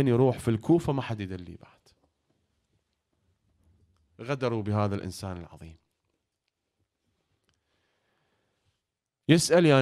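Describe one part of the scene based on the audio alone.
A young man speaks with feeling into a microphone, pausing between phrases.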